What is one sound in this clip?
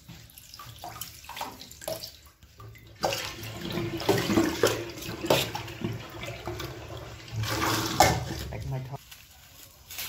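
Tap water runs into a steel sink.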